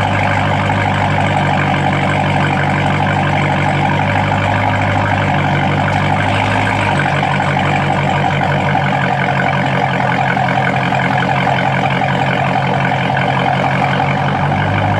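A car engine idles with a deep, loud exhaust rumble close by.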